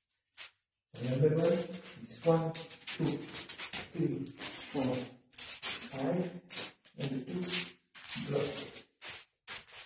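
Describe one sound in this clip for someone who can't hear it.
An adult man speaks close by.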